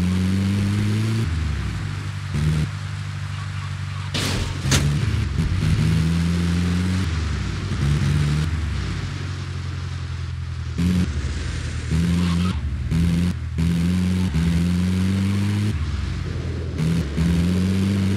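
Tyres rumble and crunch over grass and dirt.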